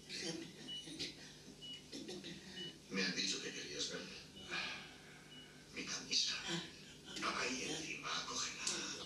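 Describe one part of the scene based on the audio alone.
An elderly woman talks calmly, close by.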